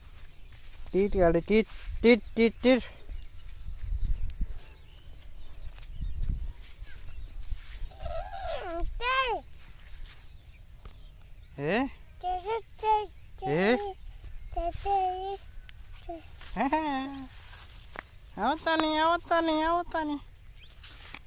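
A small child babbles and calls out nearby.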